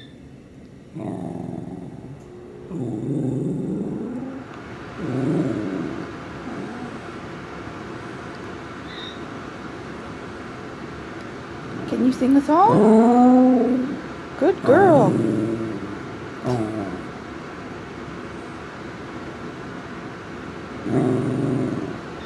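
A dog grumbles and whines close by.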